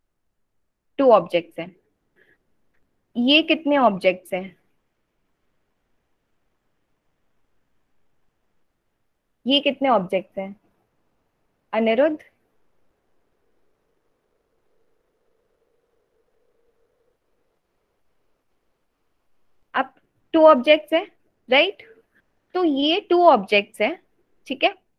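A young woman speaks calmly into a microphone over an online call, with pauses.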